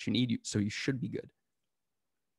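A man speaks briefly and calmly into a close microphone.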